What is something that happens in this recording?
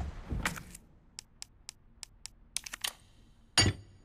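Short clicks tick one after another.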